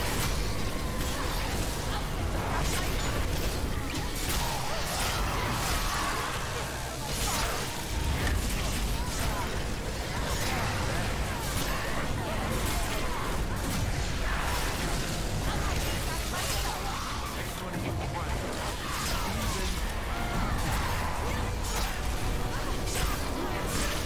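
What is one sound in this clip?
An electric beam crackles and buzzes loudly in bursts.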